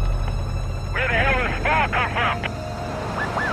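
A man shouts excitedly nearby.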